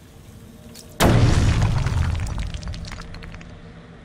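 An explosion booms loudly and echoes.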